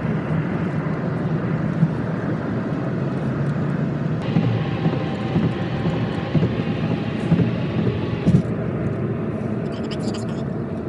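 A car's engine hums and tyres roar steadily on a highway, heard from inside the car.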